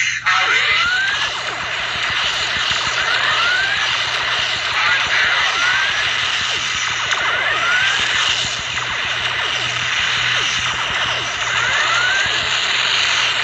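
Laser blasts zap again and again with rising chirps.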